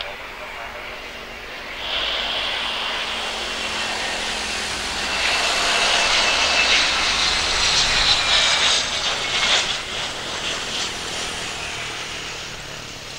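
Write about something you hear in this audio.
A jet engine whines loudly as a plane passes by.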